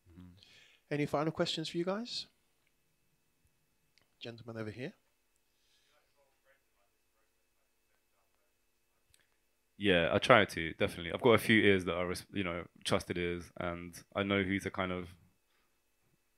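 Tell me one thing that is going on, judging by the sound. A man talks calmly into a microphone, heard through a loudspeaker, with pauses between phrases.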